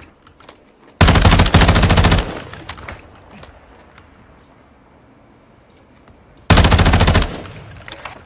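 A rifle fires loud rapid bursts of shots.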